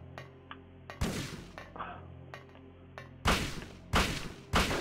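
Gunshots ring out several times.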